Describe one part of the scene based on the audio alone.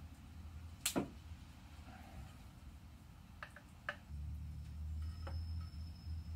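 A caulking gun clicks as its trigger is squeezed.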